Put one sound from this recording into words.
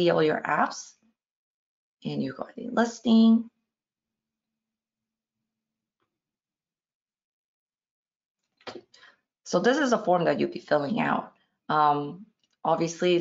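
A young woman talks calmly into a close microphone, with pauses.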